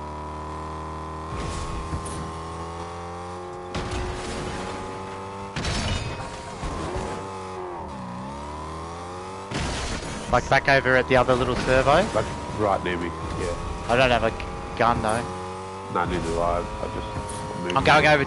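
A car engine hums steadily and revs.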